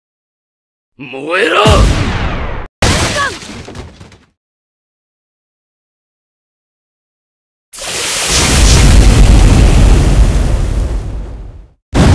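Energy blasts crackle and boom loudly.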